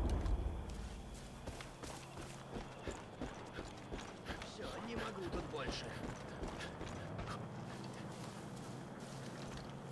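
Footsteps thud on a road and grass.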